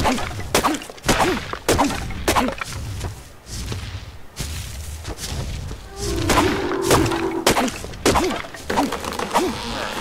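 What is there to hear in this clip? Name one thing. A stone tool chops repeatedly into a tree trunk.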